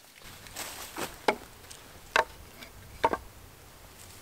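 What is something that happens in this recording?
A wooden mallet knocks on wood.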